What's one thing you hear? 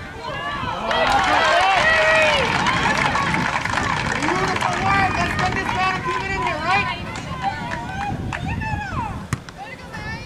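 Several people nearby talk and cheer loudly at once.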